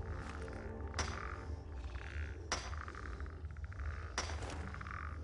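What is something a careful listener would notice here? A pickaxe strikes rock with sharp ringing clinks.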